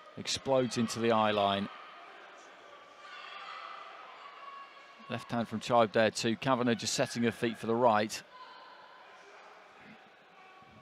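A crowd murmurs in a large arena.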